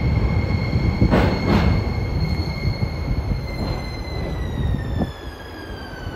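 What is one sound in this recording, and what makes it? A train rumbles loudly as it pulls in.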